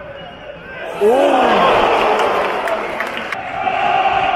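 A crowd roars with excitement.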